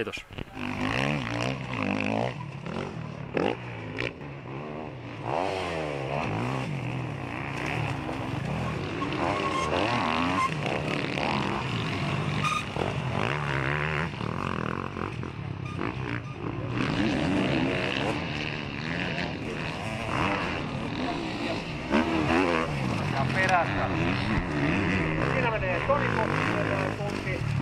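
Motorcycle engines rev up and down loudly.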